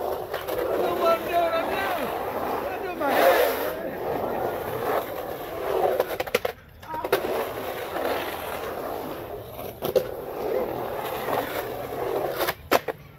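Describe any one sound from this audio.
Skateboard wheels roll and rumble across concrete.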